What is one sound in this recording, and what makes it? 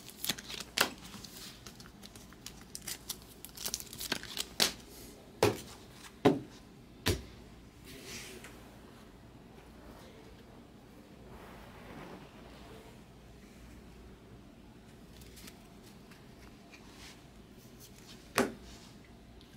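Stacks of trading cards knock and tap against a table.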